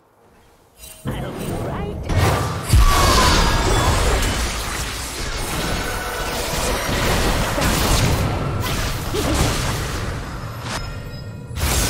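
Magic blasts, clashes and whooshes sound in a fast video game fight.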